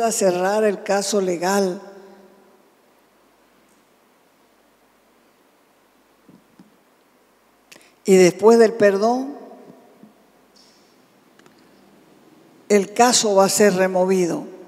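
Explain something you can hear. A middle-aged woman speaks calmly into a microphone in a reverberant room, pausing between phrases.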